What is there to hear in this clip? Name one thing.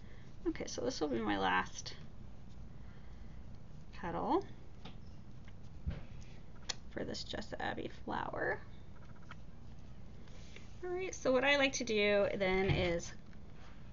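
Fabric rustles softly as hands fold and twist it.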